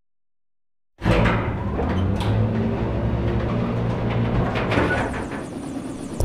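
A heavy metal lift rumbles and clanks as it moves.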